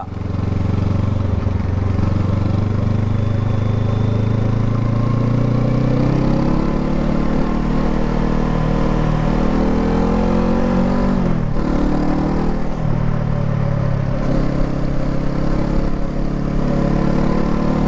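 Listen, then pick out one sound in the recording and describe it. Wind buffets past the rider.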